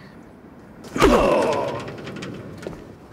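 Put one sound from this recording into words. A man grunts in pain as he is struck.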